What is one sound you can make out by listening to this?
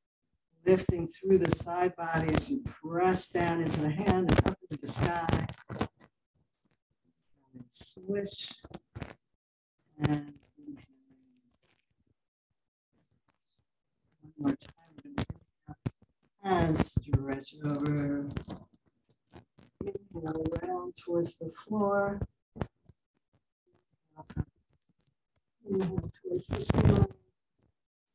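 A middle-aged woman speaks calmly through a microphone on an online call, giving instructions in pauses.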